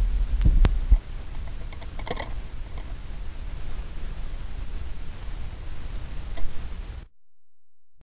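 A needle hisses and crackles on a spinning record.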